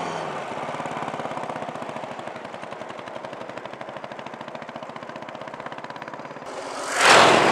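Motorcycle engines rumble as the bikes ride past on a road.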